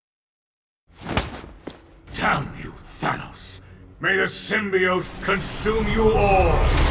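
A man speaks menacingly in a deep, distorted voice.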